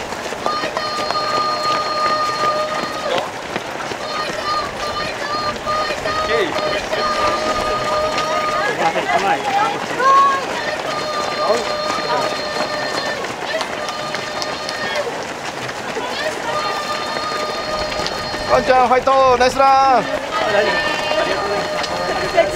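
Many running feet patter steadily on pavement.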